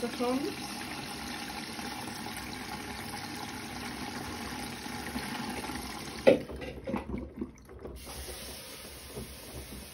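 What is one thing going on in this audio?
Water sloshes as a front-loading washing machine tumbles laundry.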